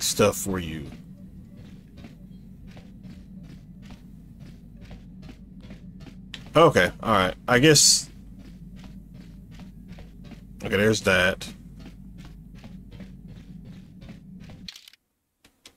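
Footsteps tread quickly and steadily on a metal floor.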